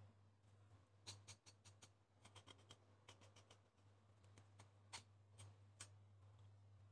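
A knife scrapes and slices melon flesh.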